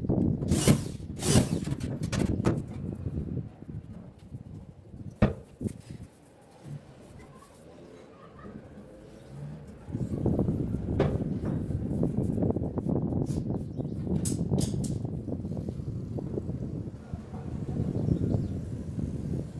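Wooden cabinet doors knock and click as a man works on them.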